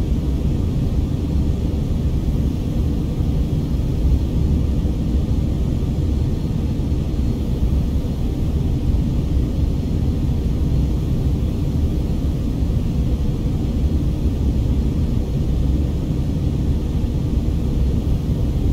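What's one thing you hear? A jet airliner's engines and rushing air make a steady, deep roar inside the cabin.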